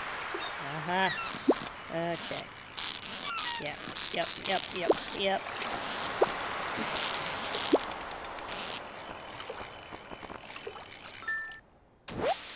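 A fishing reel clicks and whirs while a fish is reeled in.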